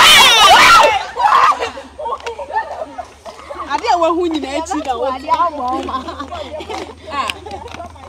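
Young women talk and laugh with animation outdoors.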